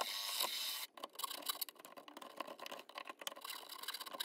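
A file rasps back and forth on wood.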